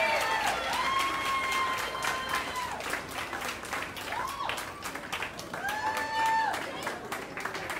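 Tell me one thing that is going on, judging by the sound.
Adults in a crowd cheer and whoop loudly.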